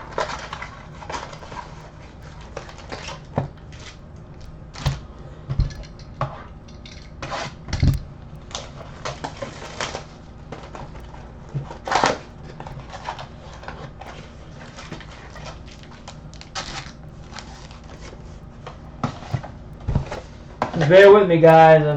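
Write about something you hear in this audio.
Plastic card packs rustle and tap as hands handle them.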